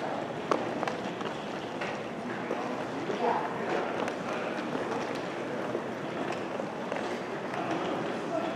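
Suitcase wheels roll across a hard floor.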